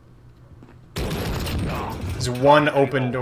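A gun fires a rapid burst of shots close by.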